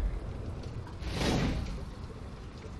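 A heavy weapon whooshes through the air.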